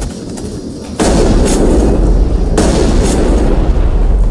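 A machine explodes with a loud bang.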